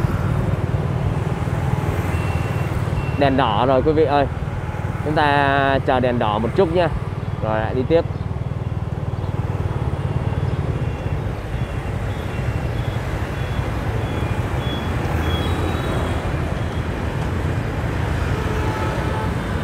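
Other motorbikes ride past in light traffic.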